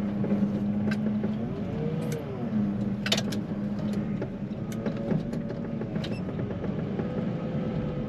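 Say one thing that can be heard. Sleet and rain patter against a window.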